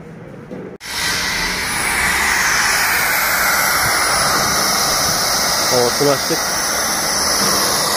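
Compressed air hisses steadily from a leaking metal tank.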